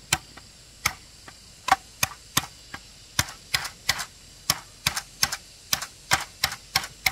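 A knife chops into bamboo with sharp, repeated knocks.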